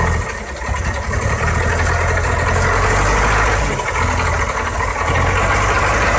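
A truck's diesel engine rumbles and labours close by.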